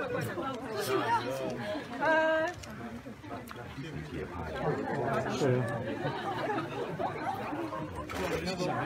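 A crowd of young men and women chatters and calls out close by.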